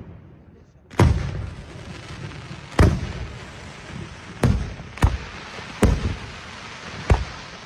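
Fireworks crackle and fizz after the bursts.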